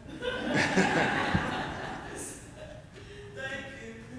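A woman speaks out to a gathering.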